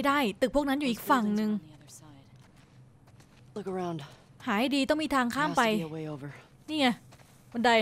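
Footsteps brush through tall grass.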